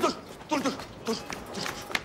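Footsteps tap on a stone street.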